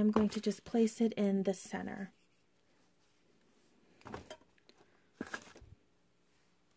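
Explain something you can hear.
Plastic bottles are set down with soft knocks into plastic baskets.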